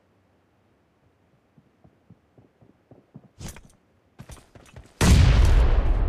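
Footsteps of a running game character patter over the ground.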